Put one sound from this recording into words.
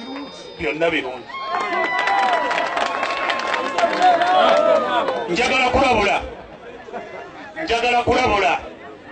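A man speaks loudly and forcefully into a microphone, heard through a loudspeaker outdoors.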